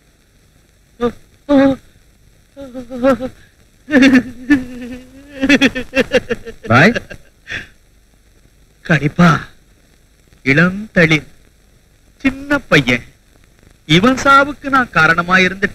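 An elderly man wails and cries out in anguish.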